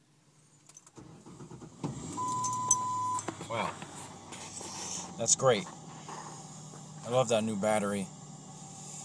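A car engine cranks and starts, then idles with a low rumble.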